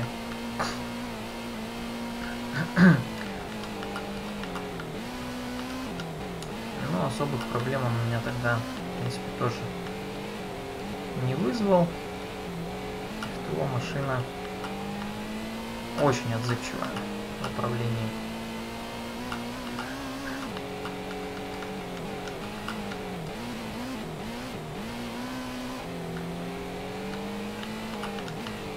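A racing car engine whines steadily, its pitch rising and dropping as the gears shift.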